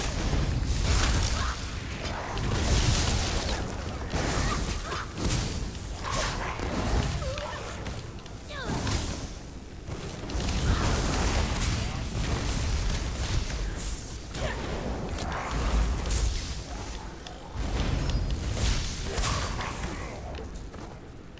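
Crackling lightning spells and magic blasts burst again and again.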